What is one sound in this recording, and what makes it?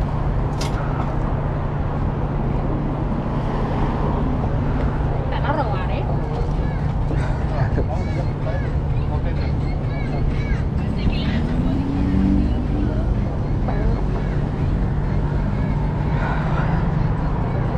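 Cars drive past on a busy street outdoors.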